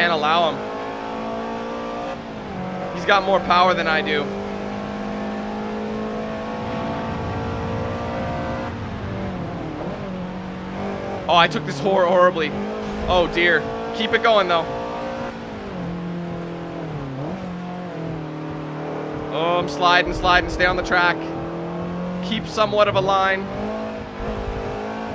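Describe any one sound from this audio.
A car engine hums steadily, its pitch rising and falling with gear changes.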